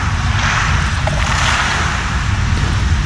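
Water splashes as someone climbs out of a pool.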